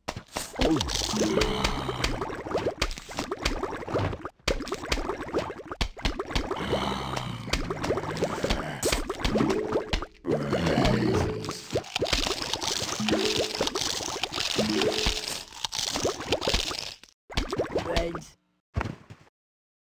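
Small cartoon mushrooms puff out spores with soft popping shots.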